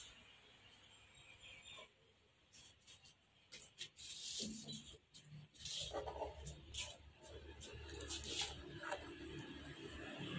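A sticker crinkles and peels off a plastic panel under someone's fingers.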